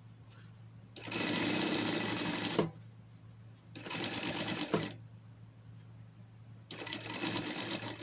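A sewing machine runs in short, loud bursts.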